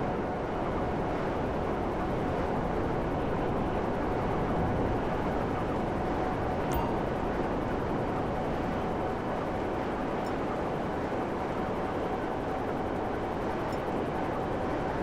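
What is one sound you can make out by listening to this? A motorbike's jet thruster roars steadily.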